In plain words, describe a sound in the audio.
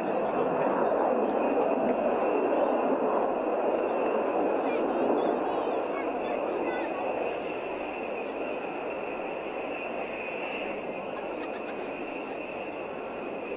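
Jet engines roar in the distance as aircraft fly overhead and slowly fade.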